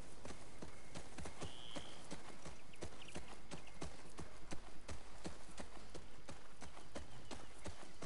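Undergrowth rustles as a horse pushes through it.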